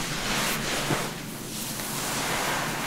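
Fingers comb softly through wet hair.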